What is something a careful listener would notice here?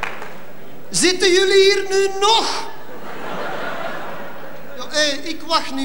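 A man speaks loudly into a microphone, heard through a hall's loudspeakers.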